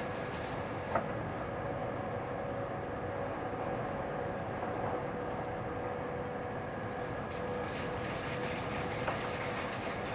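Train wheels click over rail joints now and then.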